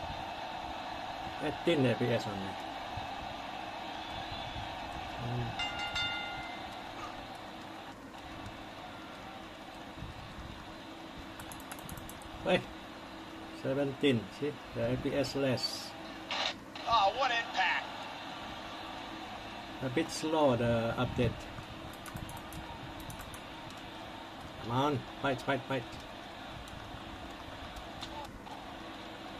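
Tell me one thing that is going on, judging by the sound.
Buttons click on a clip-on phone game controller.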